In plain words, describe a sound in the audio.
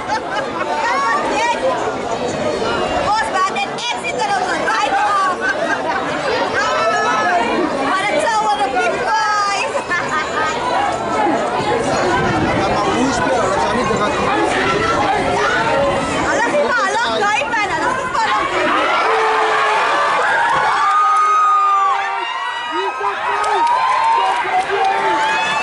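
Men shout and call to each other outdoors.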